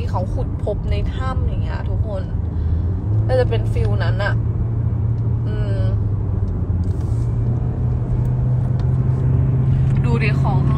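A young woman talks casually and close up.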